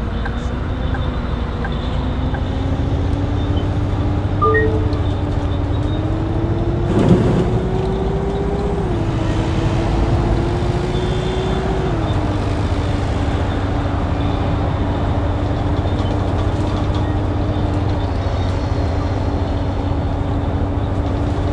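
A bus engine hums steadily, rising and falling in pitch as it changes gear.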